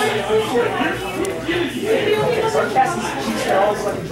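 Playing cards shuffle and riffle in hands.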